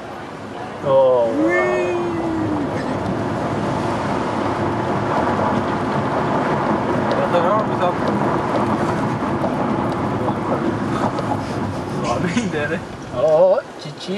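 Tyres rumble on the road as a car drives downhill.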